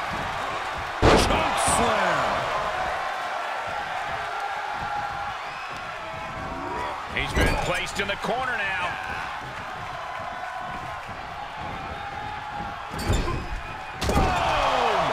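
Heavy thuds of bodies hitting a wrestling ring mat ring out.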